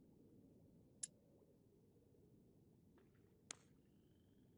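A soft menu click sounds a few times.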